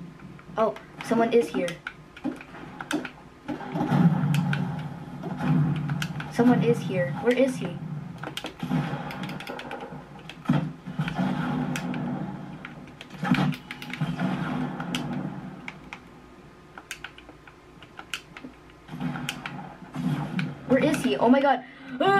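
Video game gunshots crack from a small speaker.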